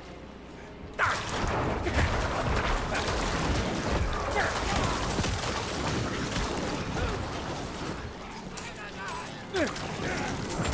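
Game weapons clash and monsters shriek in a busy fight.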